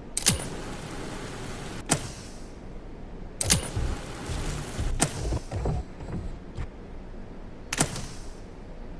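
Metal parts clank and hiss as they are pulled loose from a robot.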